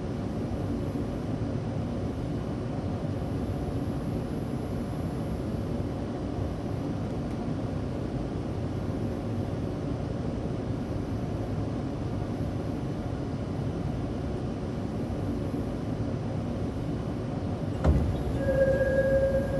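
A train carriage rumbles steadily along the track.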